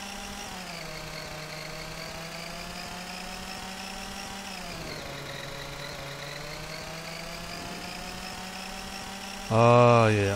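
A scooter engine hums steadily, its pitch rising and falling with speed.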